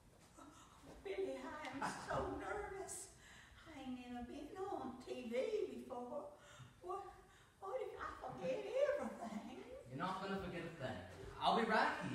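An elderly woman speaks nearby.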